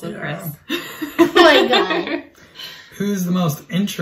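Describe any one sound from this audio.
A young child laughs and speaks.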